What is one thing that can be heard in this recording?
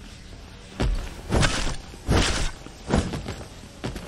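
A heavy punch lands with a thud.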